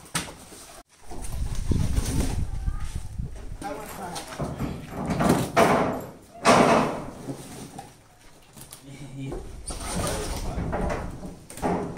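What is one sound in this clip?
Cardboard boxes thump as they are set down on a hard floor.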